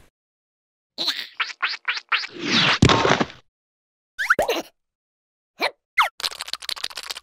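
A cartoon creature squeals and jabbers in a high, squeaky voice.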